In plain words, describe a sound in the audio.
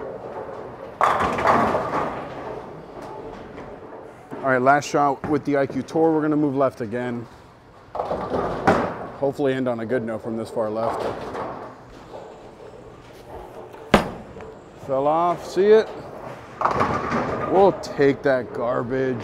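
Bowling pins crash and clatter in the distance.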